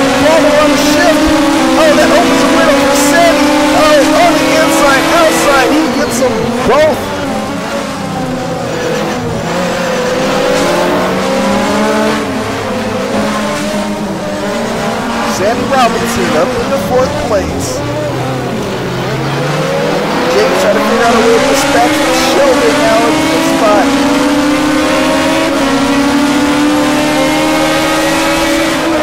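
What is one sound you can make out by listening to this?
A racing car engine roars at high revs, dropping in pitch as the car brakes and rising again as it speeds up.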